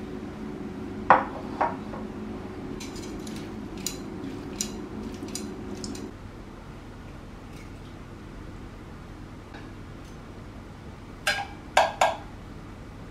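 Metal tongs click and clink against a bowl.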